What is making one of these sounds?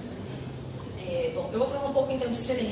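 A young woman speaks into a microphone over loudspeakers.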